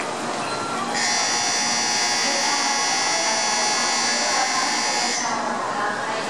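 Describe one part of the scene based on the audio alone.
A high-speed train hums with a steady high whine.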